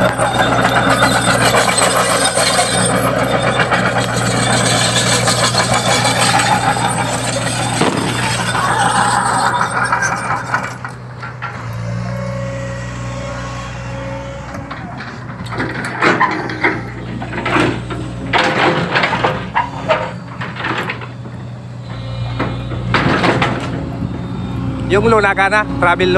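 A diesel excavator engine rumbles steadily close by.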